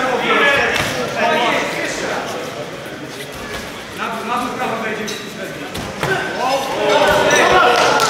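Boxing gloves thud against a boxer's body and head.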